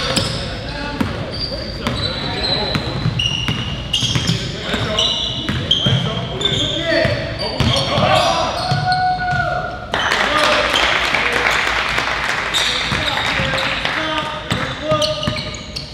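Sneakers squeak sharply on a hard court in a large echoing gym.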